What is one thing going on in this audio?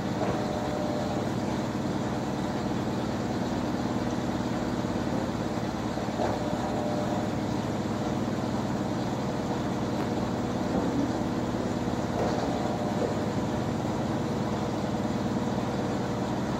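A washing machine drum spins fast with a steady hum and rumble.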